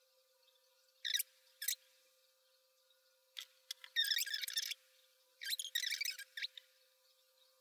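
A makeup brush brushes softly across skin close by.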